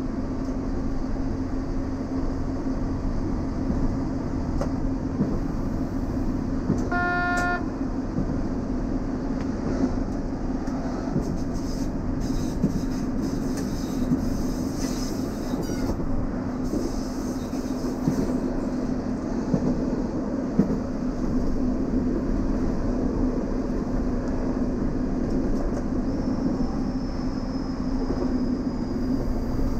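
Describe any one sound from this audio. Train wheels rumble on rails.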